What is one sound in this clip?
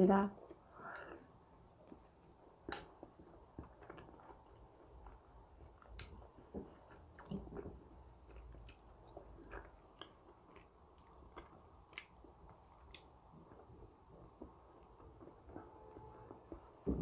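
A woman chews and slurps food close to a microphone.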